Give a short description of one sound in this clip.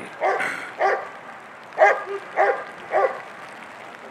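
A dog barks loudly several times.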